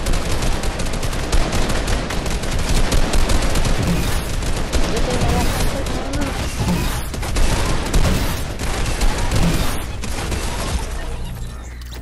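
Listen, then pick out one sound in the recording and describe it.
Rapid gunfire crackles loudly and steadily.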